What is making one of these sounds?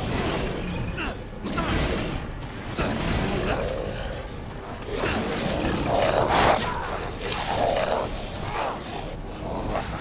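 A monstrous creature growls and snarls close by.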